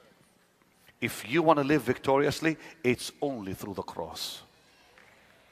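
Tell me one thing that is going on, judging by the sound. A man preaches loudly and forcefully through a microphone in a large hall.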